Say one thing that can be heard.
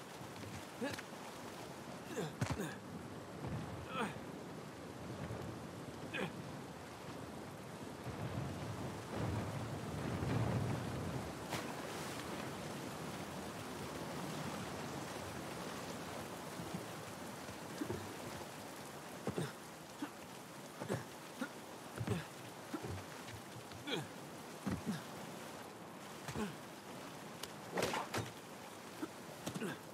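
Footsteps thud on the ground.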